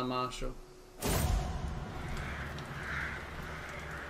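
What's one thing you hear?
A soft whoosh plays as a game menu opens.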